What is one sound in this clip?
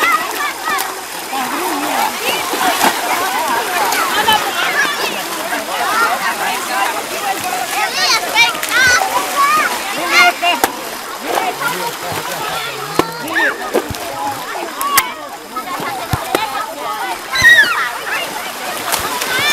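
Children squeal and laugh.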